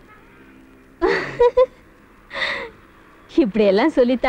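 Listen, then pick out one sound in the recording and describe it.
A young woman sings playfully.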